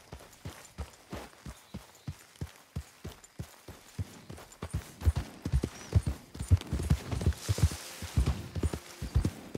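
A horse's hooves thud steadily on soft ground, growing heavier.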